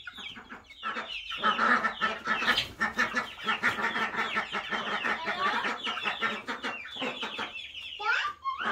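Chicks peep rapidly and constantly close by.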